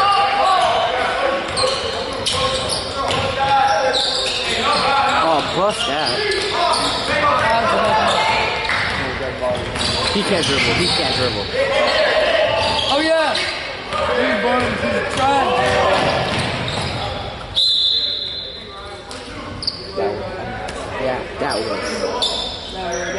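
Spectators chatter and call out in an echoing gym.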